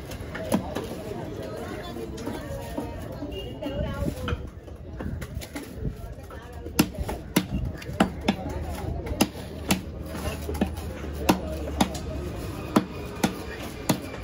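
A knife slices wetly through fish flesh.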